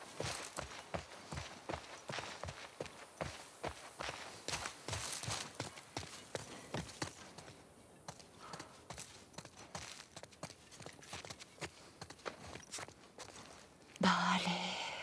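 Footsteps crunch and tap quickly on the ground.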